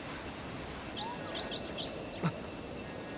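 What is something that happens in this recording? Electronic alert tones chirp in quick rising and falling sweeps.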